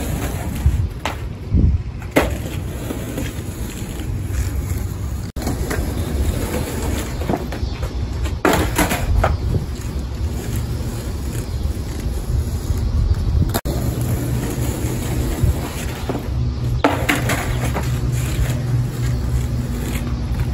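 Skateboard wheels rumble over rough asphalt.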